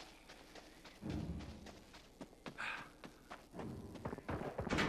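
A creature snarls and growls up close.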